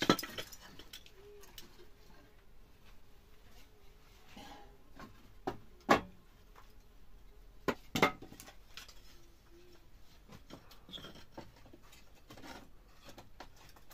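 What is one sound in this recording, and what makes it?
A man taps and scrapes at a ceiling by hand, with sharp knocks now and then.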